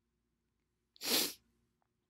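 An elderly woman breathes out heavily.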